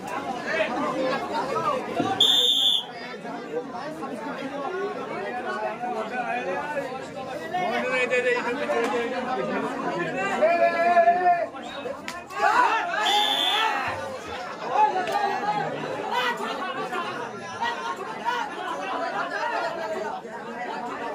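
A crowd of men shouts and chatters loudly outdoors.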